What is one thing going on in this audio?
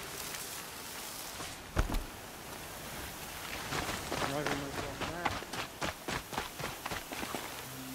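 Footsteps scrape over rock.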